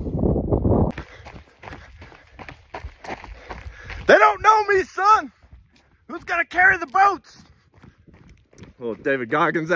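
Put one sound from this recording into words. Footsteps crunch on a dry dirt trail.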